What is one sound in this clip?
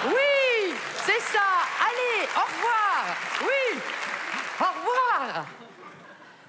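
A woman laughs loudly and exclaims through a microphone.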